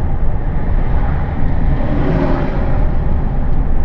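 A truck passes by with a rushing whoosh.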